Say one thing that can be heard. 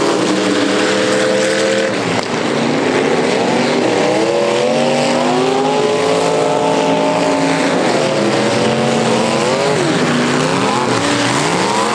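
Several car engines rev and roar loudly outdoors, rising and falling in pitch.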